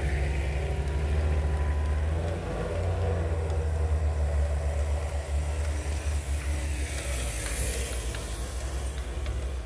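Tyres crunch through deep snow.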